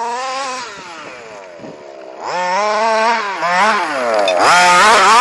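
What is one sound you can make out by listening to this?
A cat yowls loudly in long, wavering cries.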